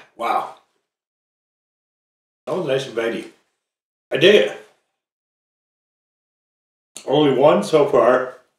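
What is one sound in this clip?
A man speaks close by in short bursts with pauses between.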